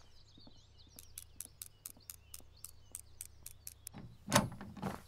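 A lock clicks rapidly as it is picked.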